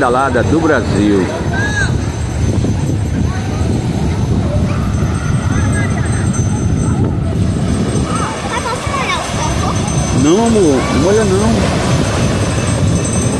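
A crowd of people chatter and shout nearby outdoors.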